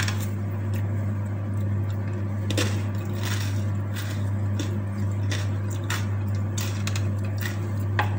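Fingers rustle and scrape through food on a wooden plate.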